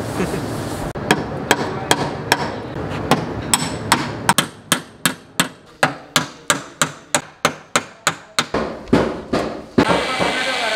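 A hammer taps sharply on metal, again and again.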